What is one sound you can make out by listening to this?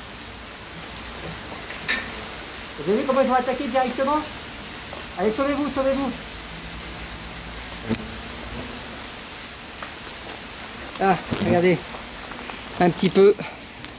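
Wasps buzz around a nest.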